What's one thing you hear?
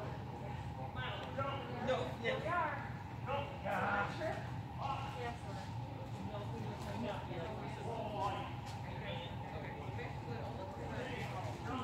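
Adults talk at a distance in a large echoing hall.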